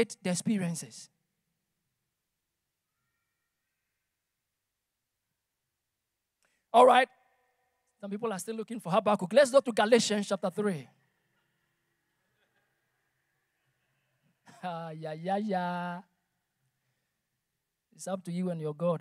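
A man speaks through a microphone in bursts, with pauses between phrases.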